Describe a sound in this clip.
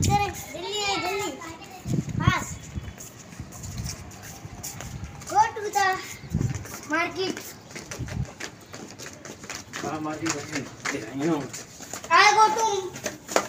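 A young boy talks excitedly nearby.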